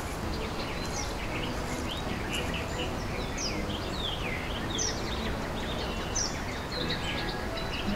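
Water splashes softly in a small fountain.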